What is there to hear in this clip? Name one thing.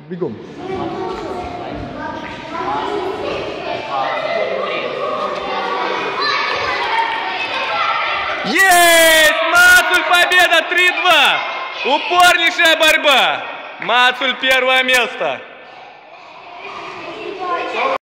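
Children chatter and call out in an echoing hall.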